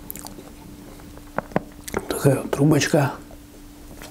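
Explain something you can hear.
A crisp pastry crunches as it is bitten.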